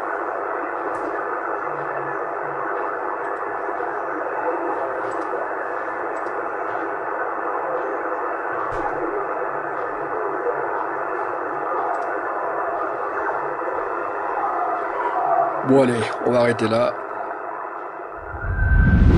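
A CB radio hisses with static from a weak signal through its loudspeaker.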